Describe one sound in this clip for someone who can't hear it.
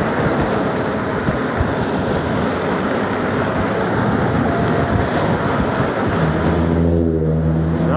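Cars drive past on the road.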